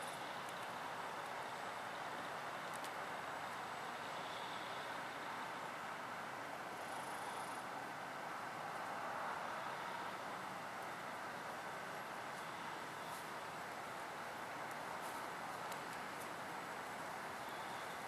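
Antlers scrape and rustle through a pile of dry debris.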